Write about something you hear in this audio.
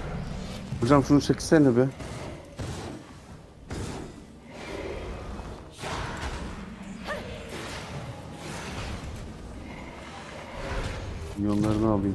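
Magical spell effects whoosh and shimmer.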